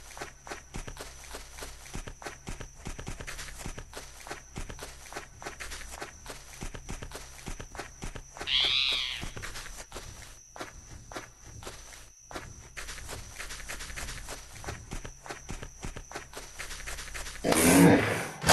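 A crocodile's heavy footsteps thud on the ground.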